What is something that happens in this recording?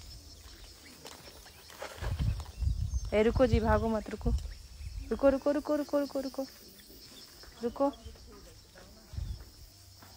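Sandals slap and scuff on pavement as a person walks.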